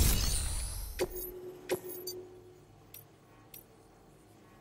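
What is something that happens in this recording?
Short menu clicks and beeps sound a few times.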